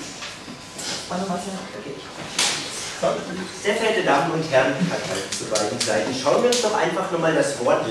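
A young man speaks to an audience in a room.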